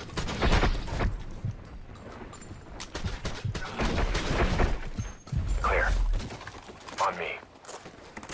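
Gunfire cracks in short, rapid bursts.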